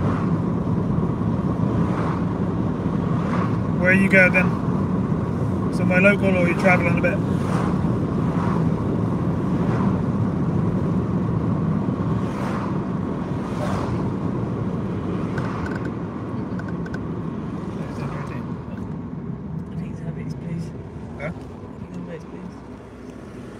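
A car rumbles steadily along a road, quieting as it slows near the end.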